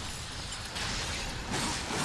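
Magic energy bolts crackle and whoosh.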